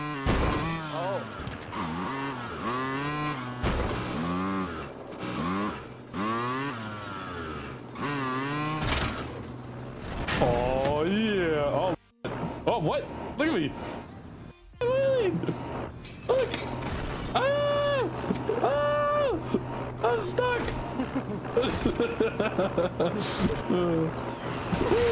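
A motorcycle engine hums and revs.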